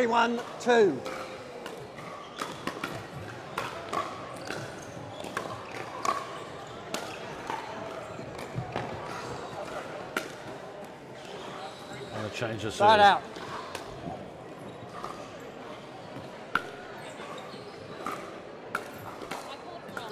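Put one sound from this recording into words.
Paddles hit a plastic ball with sharp pops, echoing in a large hall.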